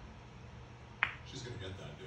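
A cue stick strikes a pool ball with a sharp click.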